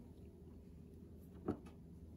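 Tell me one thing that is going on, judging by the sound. A metal hand tool knocks lightly against a wooden workbench.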